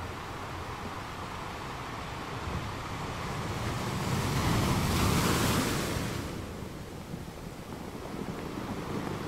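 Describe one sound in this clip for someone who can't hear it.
Water washes and hisses over the rocky shore.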